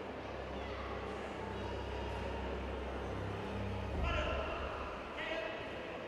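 Voices murmur and echo in a large hall.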